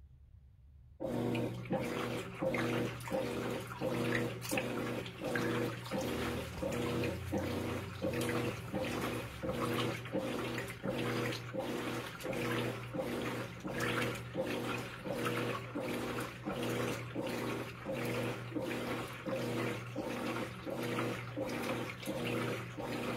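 Water sloshes in a washing machine tub.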